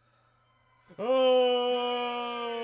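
A young man lets out a long, loud, drawn-out cry.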